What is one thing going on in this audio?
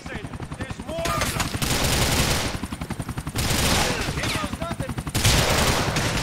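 A gun fires a rapid burst.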